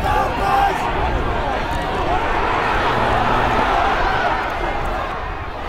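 A large crowd of spectators cheers and shouts outdoors.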